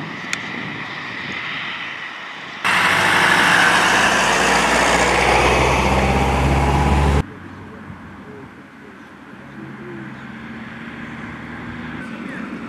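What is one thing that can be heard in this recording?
Cars drive past on a road.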